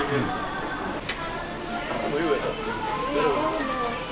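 Meat sizzles on a grill.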